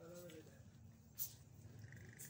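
Footsteps tap on a stone pavement nearby.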